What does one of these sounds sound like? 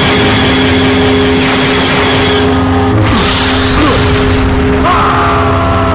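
Blaster shots fire and explode.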